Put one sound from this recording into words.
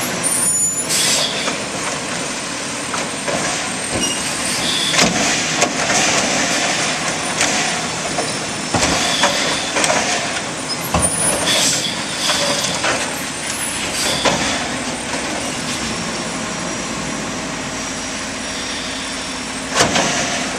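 Plastic bins clatter and bang against metal.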